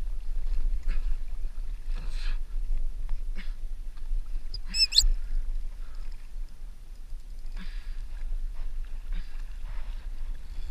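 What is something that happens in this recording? Waves slosh and splash against a small boat's hull.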